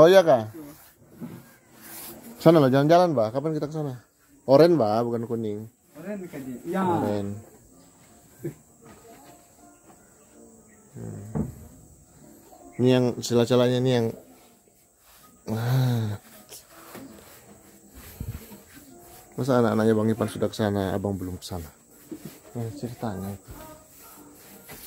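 A paintbrush brushes against wooden boards.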